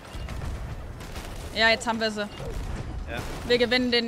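A ship's cannon booms in a game.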